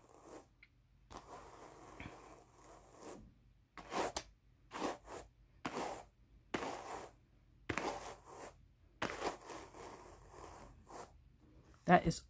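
Wire carding brushes scrape and rustle through wool in repeated strokes.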